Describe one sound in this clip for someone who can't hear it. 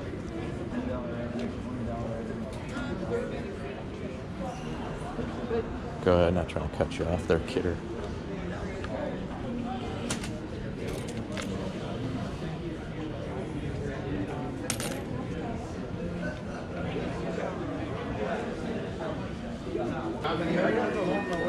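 A crowd of people chatters in a large indoor hall.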